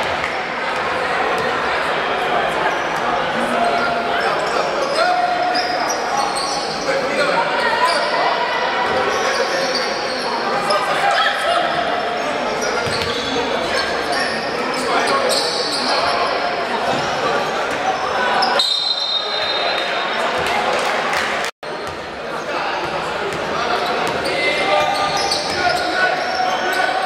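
A crowd cheers and chatters loudly in an echoing hall.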